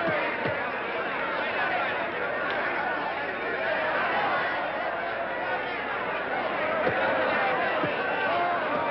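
Punches thud against a boxer's body.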